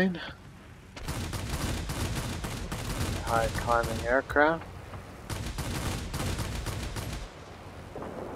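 Machine guns fire in long rattling bursts.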